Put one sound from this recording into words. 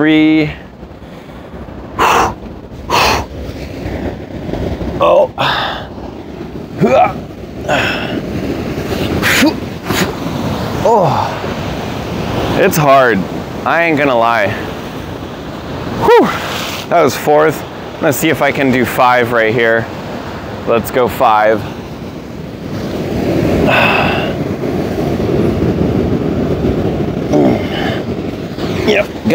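Waves crash and wash against rocks nearby.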